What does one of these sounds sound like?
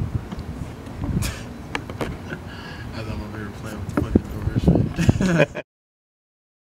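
A man laughs cheerfully nearby.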